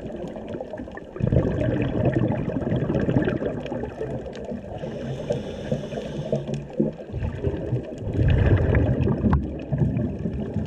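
Air bubbles gurgle and rumble underwater from a diver's regulator.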